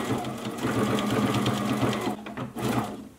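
A sewing machine hums steadily, then stops.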